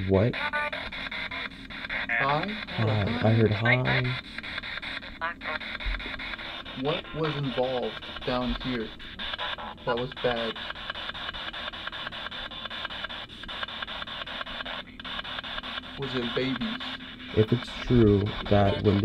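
Short broken snatches of voices come through a small radio's speaker.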